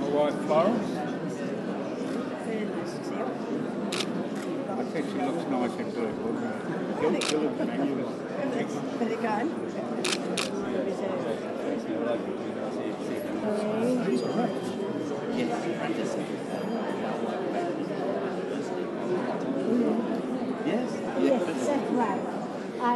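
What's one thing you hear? Many adults chatter all around in a large echoing hall.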